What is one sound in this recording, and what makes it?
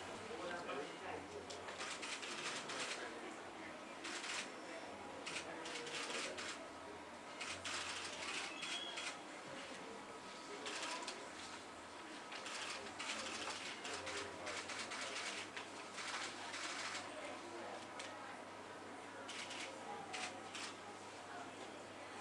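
Pens scratch on paper.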